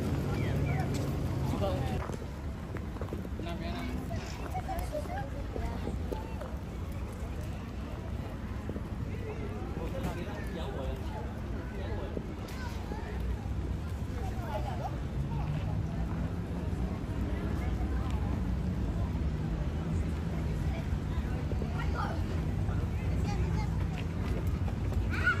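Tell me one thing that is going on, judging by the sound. Men and women talk casually nearby outdoors.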